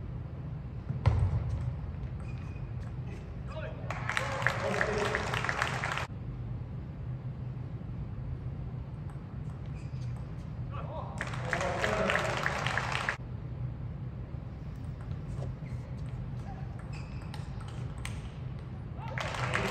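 A ping-pong ball clicks back and forth off paddles and a table in a quick rally.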